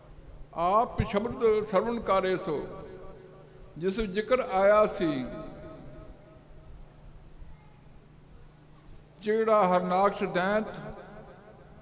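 An elderly man speaks slowly and earnestly into a microphone, heard through a loudspeaker in bursts with pauses.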